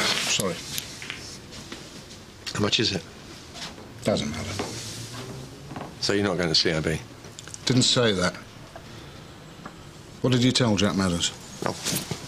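An older man talks calmly nearby.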